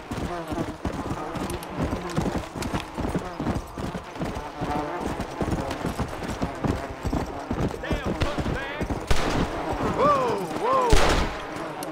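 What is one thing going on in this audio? Horse hooves gallop quickly over the ground.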